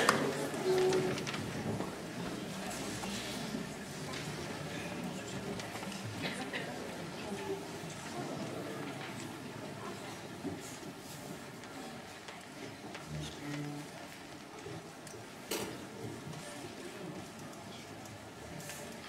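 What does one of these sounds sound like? A small string orchestra plays in a large echoing hall.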